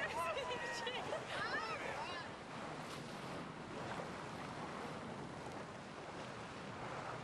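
Strong wind roars outdoors.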